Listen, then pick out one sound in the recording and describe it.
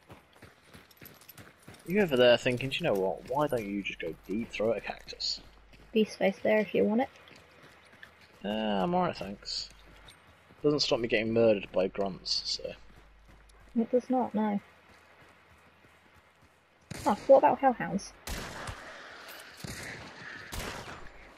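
Footsteps crunch on dirt and grass at a steady walking pace.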